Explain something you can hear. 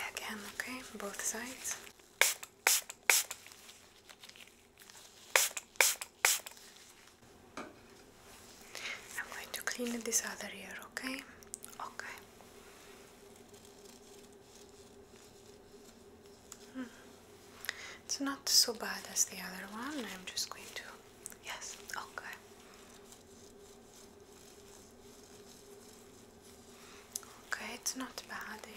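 A young woman whispers softly close to the microphone.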